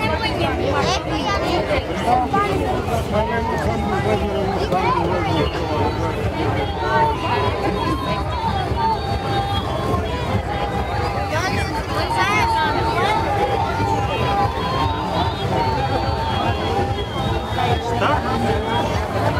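A crowd of men and women chatters all around, outdoors.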